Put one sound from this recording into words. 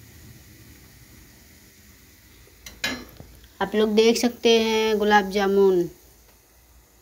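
Oil sizzles quietly in a frying pan.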